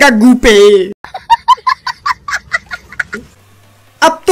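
A young child laughs loudly nearby.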